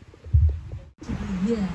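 A woman speaks through a loudspeaker at a distance.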